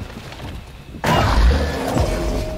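A large body splashes heavily into water.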